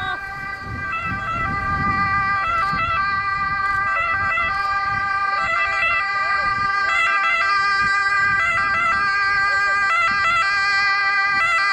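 An ambulance engine hums as it drives slowly closer.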